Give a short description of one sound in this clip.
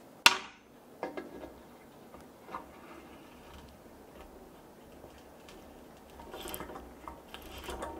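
A metal tap scrapes and clicks faintly as it is turned by hand into a hole.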